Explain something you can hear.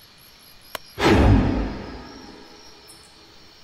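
A large creature lets out a loud, rumbling roar that fades.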